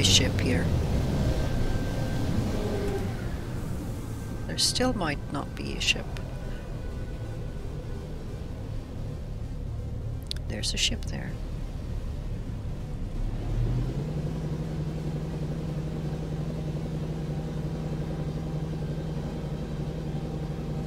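A spaceship engine rumbles low and steadily.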